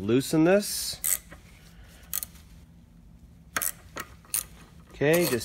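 A metal wrench clicks and clanks against a bolt.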